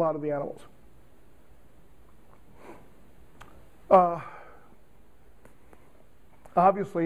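An elderly man speaks in short bursts with long pauses.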